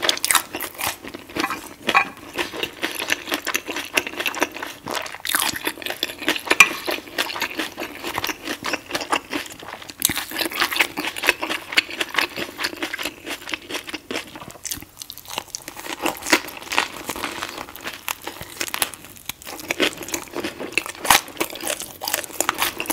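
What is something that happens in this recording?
A woman chews and smacks her lips wetly, very close to a microphone.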